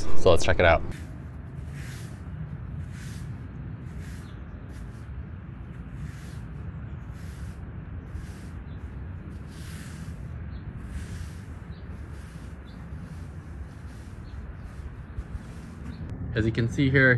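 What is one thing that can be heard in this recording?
A broom sweeps with soft brushing strokes.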